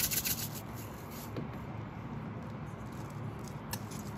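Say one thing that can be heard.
A spoon stirs rice in a metal bowl.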